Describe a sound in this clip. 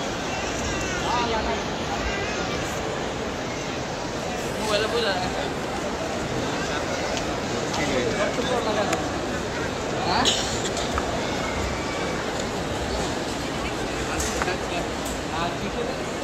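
A large crowd murmurs and chants steadily.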